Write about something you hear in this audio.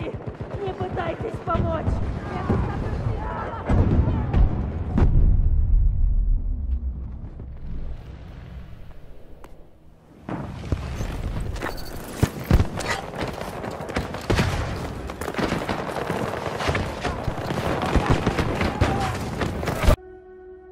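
Gunfire and explosions boom nearby.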